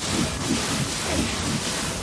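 A blade clangs against metal.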